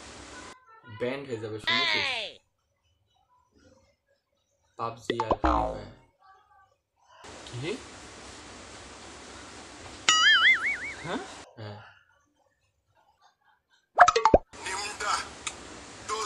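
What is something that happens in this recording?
A young man talks on a phone, close by, with animation.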